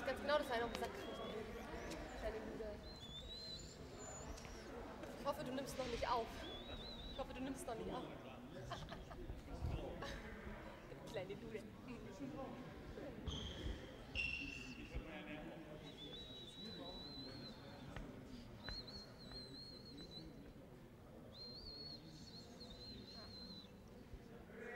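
Players' voices murmur and call out in a large echoing hall.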